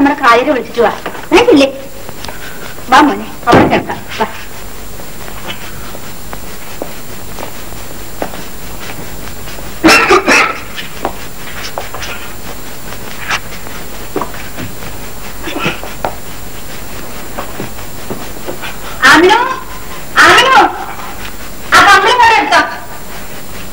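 A woman speaks in short, agitated bursts.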